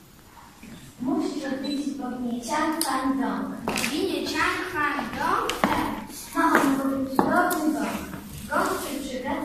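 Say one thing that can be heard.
A child speaks clearly on a stage, in a hall with a slight echo.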